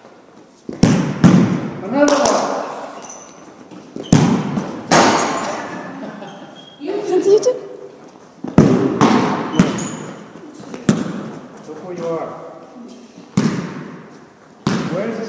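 A ball thuds hard against a wall, echoing through a large hall.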